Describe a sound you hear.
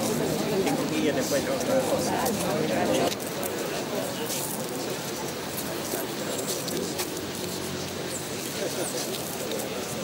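A crowd of people murmurs and chats outdoors.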